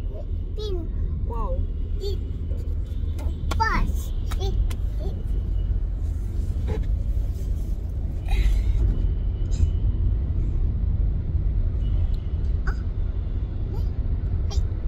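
A car engine rumbles low and steady inside the cabin.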